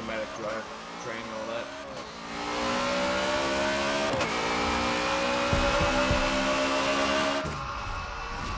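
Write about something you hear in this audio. A car engine revs hard and rises in pitch as the car speeds up through the gears.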